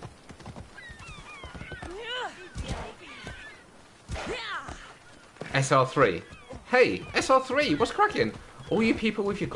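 A horse gallops with quick hoofbeats.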